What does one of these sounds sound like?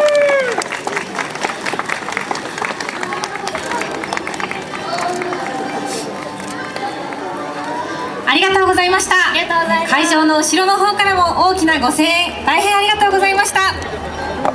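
Young women sing a pop song in unison into handheld microphones.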